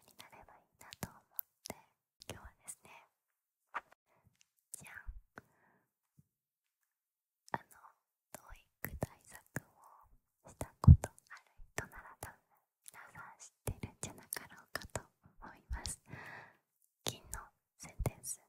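A young woman whispers softly and close into a microphone.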